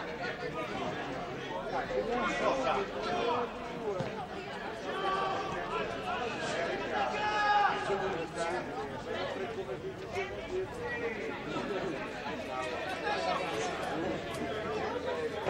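Distant men shout across an outdoor football pitch.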